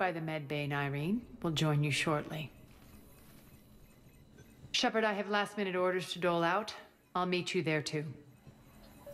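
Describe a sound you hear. A woman speaks calmly in a low voice.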